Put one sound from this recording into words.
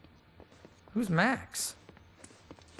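A man asks a short question with surprise.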